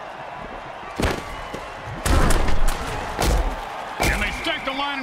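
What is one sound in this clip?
Armoured players crash together in heavy tackles.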